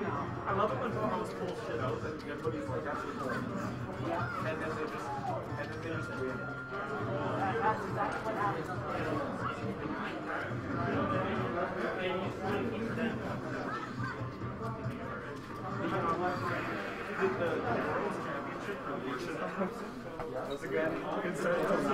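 A young man talks excitedly nearby.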